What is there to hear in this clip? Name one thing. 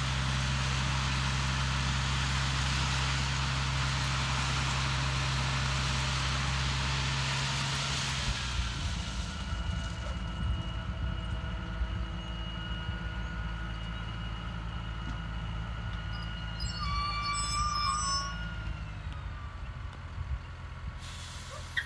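A heavy diesel engine rumbles steadily nearby.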